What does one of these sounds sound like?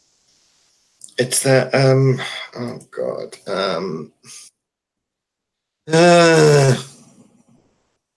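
A middle-aged man speaks over an online call.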